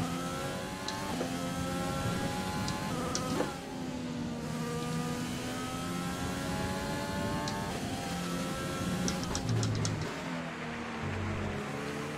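A racing car engine screams at high revs, its pitch climbing and dropping as it shifts gears.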